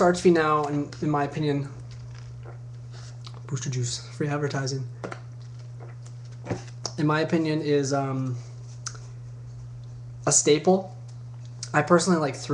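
A young man talks casually and close up into a microphone.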